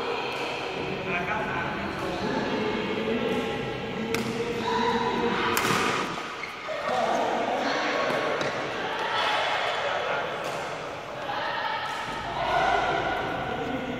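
Shuttlecocks are struck sharply with rackets in an echoing hall.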